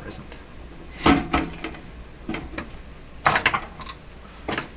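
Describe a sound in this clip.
Metal parts clank as a cover is lifted off.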